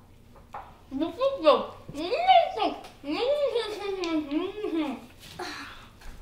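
A girl speaks with animation close by.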